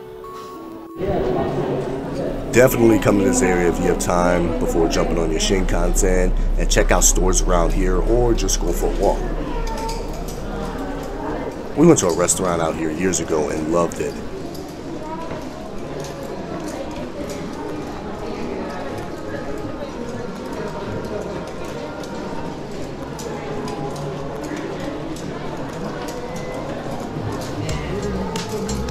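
A crowd murmurs and chatters in an echoing indoor passage.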